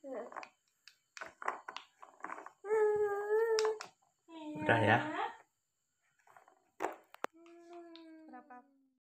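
A baby babbles and coos close by.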